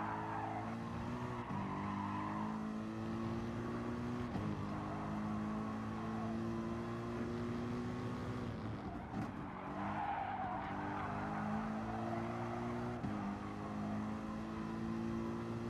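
A racing car engine roars at high revs, shifting up through the gears and dropping as it brakes for corners.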